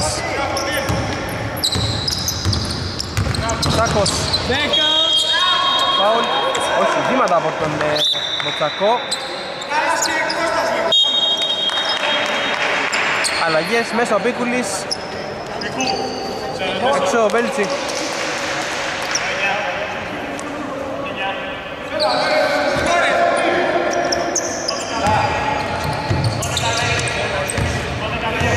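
Several young men call out to one another.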